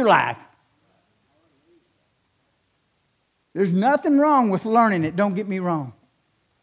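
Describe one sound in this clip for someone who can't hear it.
A middle-aged man speaks calmly through a microphone in a large echoing room.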